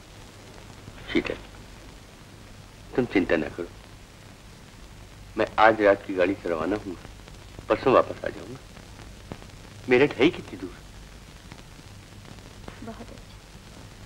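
An elderly man speaks softly and earnestly, close by, in short phrases with pauses.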